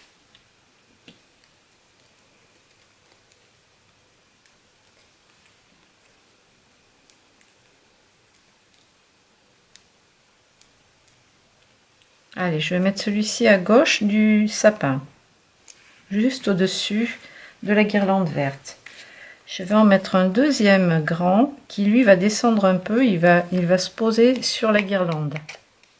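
Paper rustles and taps softly as cut-outs are handled.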